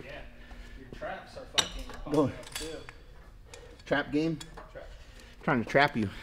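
Metal weights clank on a cable machine.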